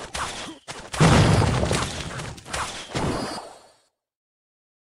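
A spell bursts with a crackling whoosh.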